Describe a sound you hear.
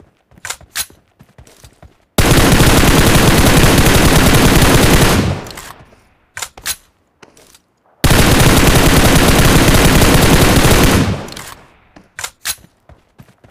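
A rifle fires single sharp shots.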